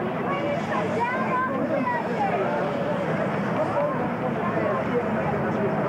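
A crowd of people talk and murmur close by.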